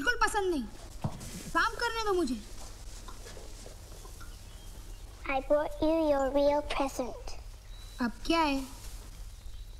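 A young girl speaks softly and clearly nearby.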